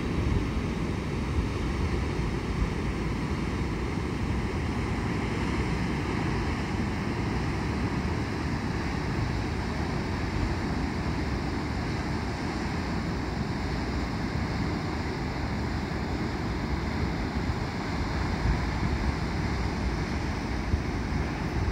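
Water roars steadily as it gushes from a dam spillway in the distance.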